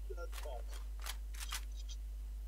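A gun's mechanism clicks and rattles as it is handled.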